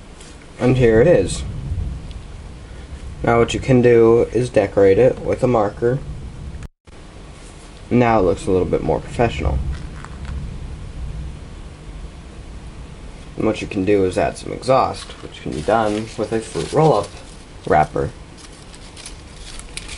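Paper rustles softly as it is handled.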